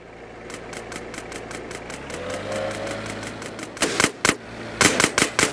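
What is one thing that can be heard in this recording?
A car engine revs and speeds up.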